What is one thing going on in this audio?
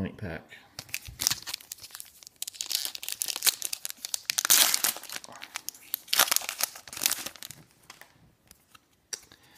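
A plastic foil wrapper crinkles and rustles in someone's hands.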